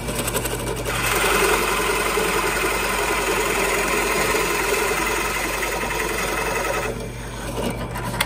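A drill bit bores into wood with a rough grinding.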